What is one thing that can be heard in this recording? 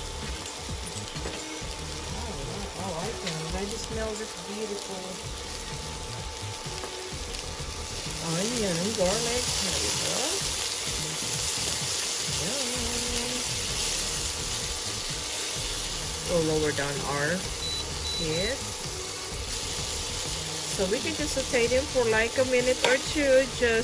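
Onions and garlic sizzle gently in hot oil.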